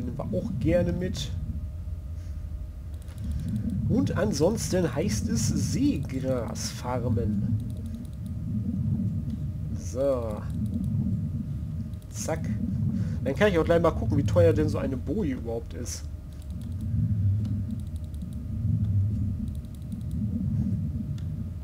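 Water churns in a low, steady underwater rumble.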